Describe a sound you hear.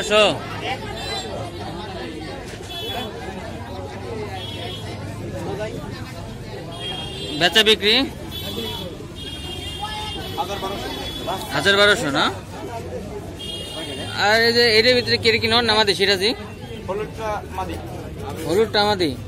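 Men talk nearby in casual voices.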